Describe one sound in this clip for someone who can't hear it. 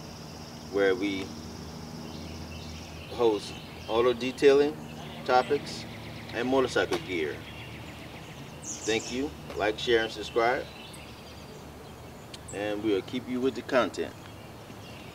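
A man speaks calmly and clearly to a nearby microphone.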